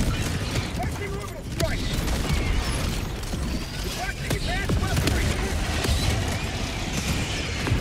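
Explosions boom and rumble nearby.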